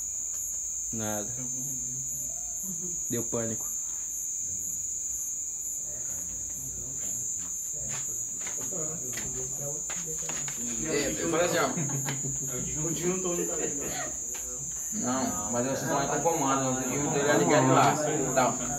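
A man speaks close by, explaining with animation.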